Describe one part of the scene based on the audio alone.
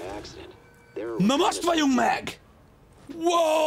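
A man shouts excitedly into a close microphone.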